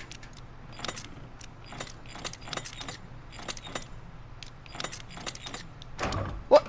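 Metal dials click as they are turned.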